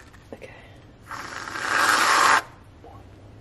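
A can of whipped cream hisses as it sprays.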